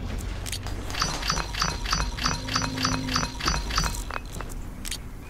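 Quick clicks tick in a rapid even run.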